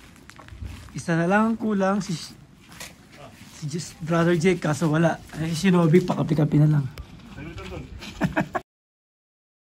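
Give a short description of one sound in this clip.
A man talks close by in a lively way.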